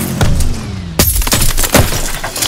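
Debris crashes and clatters in a loud impact.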